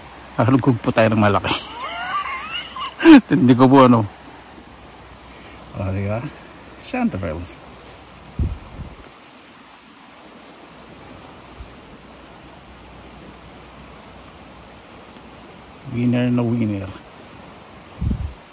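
Leaves and grass rustle as a hand pushes through low plants.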